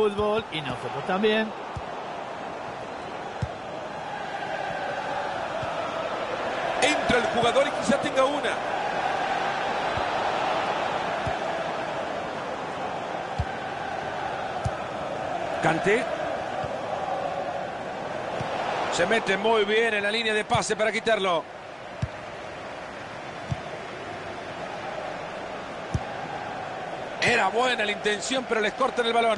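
A stadium crowd roars steadily.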